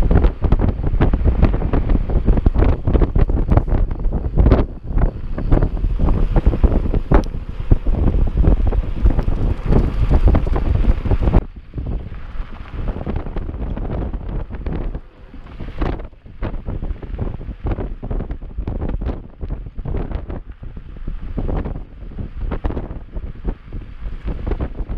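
Mountain bike tyres rattle and crunch over a dirt trail.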